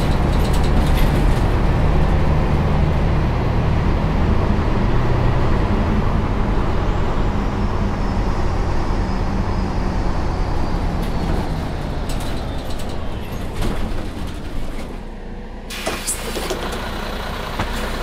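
A bus engine hums low and steadily, then quietens as the bus slows to a stop.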